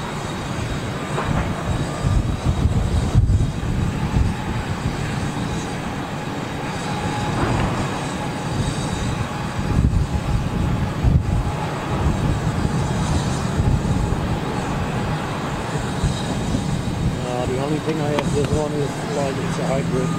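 A jet airliner's engines rumble and whine steadily as the plane taxis nearby.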